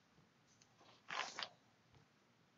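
Paper rustles as a hand smooths it flat.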